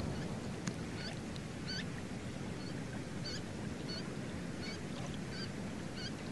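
A bird gives short, high chirping calls.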